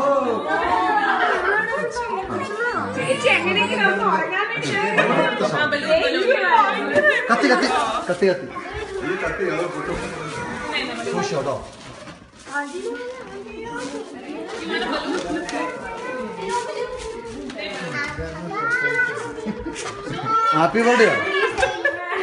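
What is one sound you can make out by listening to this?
A group of adults and children sing together loudly and cheerfully close by.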